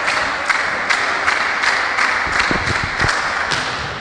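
A volleyball is struck hard by a hand.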